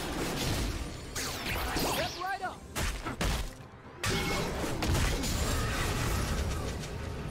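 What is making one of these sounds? Spell effects whoosh and crackle as game characters fight.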